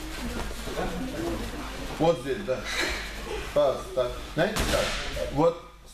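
A heavy mat scrapes and thumps onto the floor.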